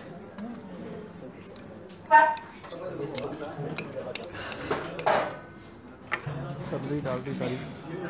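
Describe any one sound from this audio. A metal spoon clinks against a steel bowl.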